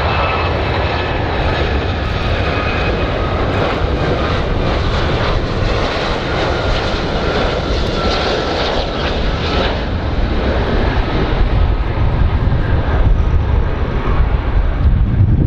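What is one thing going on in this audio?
A jet airliner's engines roar steadily as it approaches to land.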